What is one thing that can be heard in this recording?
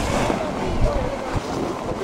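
A snow tube slides over snow.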